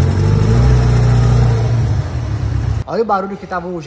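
A car engine rumbles loudly close by.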